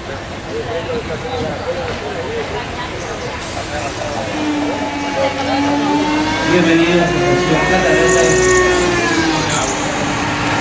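A small train rolls slowly into the station, rumbling on its rails.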